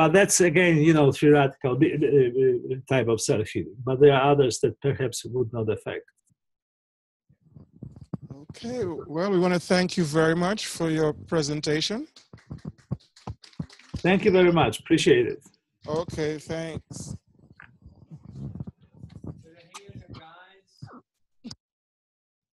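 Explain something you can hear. A man lectures through a microphone, pausing now and then.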